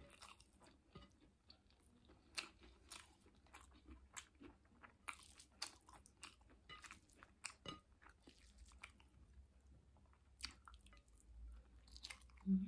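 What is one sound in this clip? A woman chews food with wet, smacking sounds close to the microphone.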